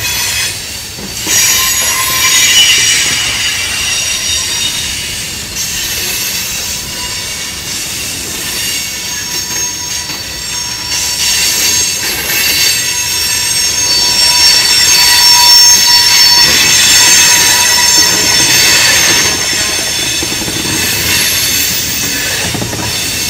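Train wheels squeal high and shrill against the rails.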